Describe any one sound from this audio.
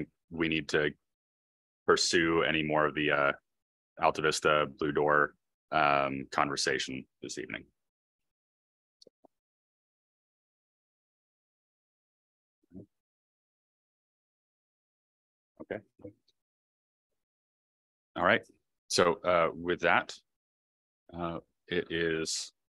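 A woman speaks calmly through a microphone, with pauses between sentences.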